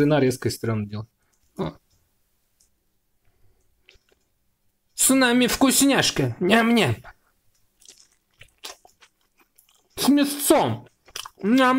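Crisp flatbread crackles as a man tears it.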